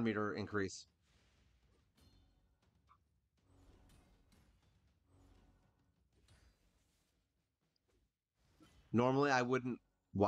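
Game magic spells whoosh and chime softly.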